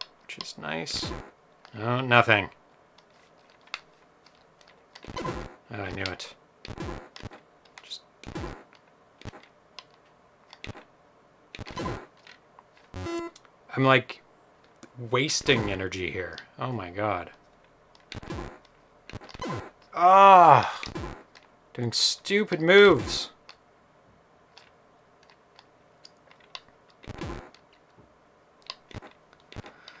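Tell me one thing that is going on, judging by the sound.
Retro video game blips and bleeps play in short bursts.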